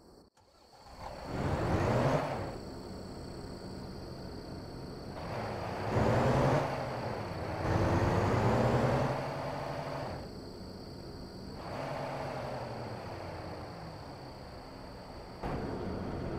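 A truck engine rumbles, revving up and settling back to an idle.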